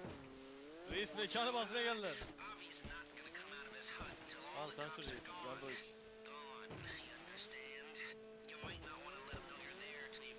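Water splashes and sprays against a jet ski's hull.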